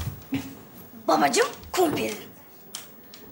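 A young girl speaks clearly.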